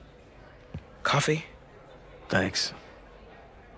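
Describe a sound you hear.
An adult man speaks quietly in reply.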